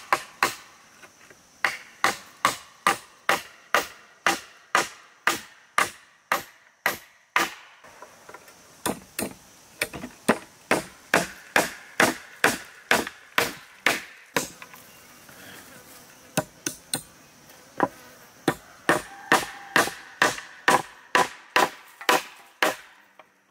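A hammer taps nails into wood in quick, steady blows.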